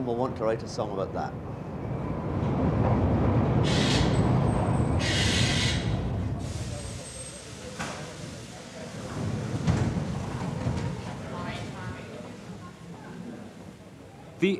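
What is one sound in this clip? An underground train rumbles into an echoing station and slows to a stop.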